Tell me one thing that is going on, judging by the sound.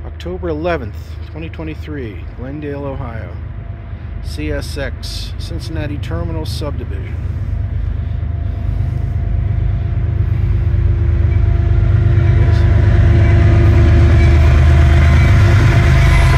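A railway crossing bell rings steadily nearby.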